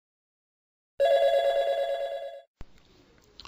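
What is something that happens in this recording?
A phone rings.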